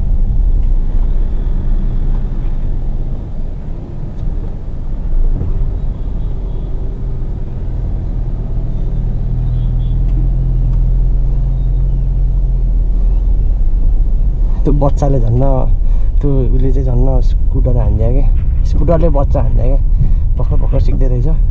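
Car tyres rumble over a rough dirt road.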